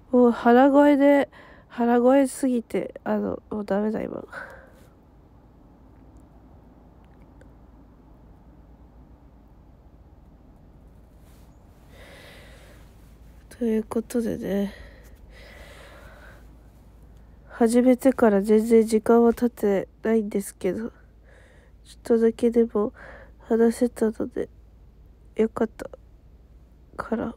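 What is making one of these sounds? A young woman speaks softly and close up, in short bursts with pauses.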